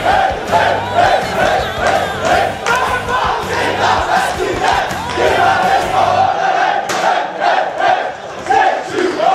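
A group of men chant and sing loudly together outdoors.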